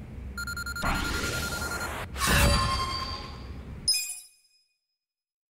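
Bright electronic chimes ring out as a score tallies up.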